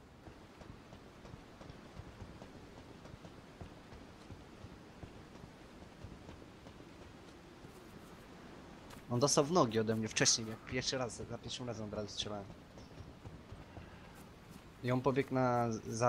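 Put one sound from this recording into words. Footsteps run over gravel and grass.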